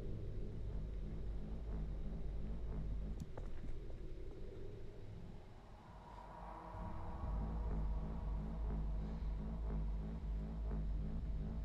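A beam of light hums steadily.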